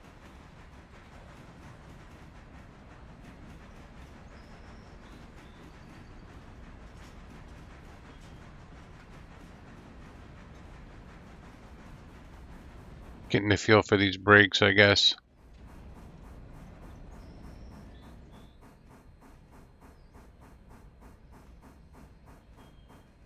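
A steam locomotive chuffs steadily as the train rolls along the track.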